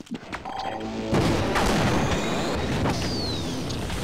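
An energy gun fires with a crackling buzz.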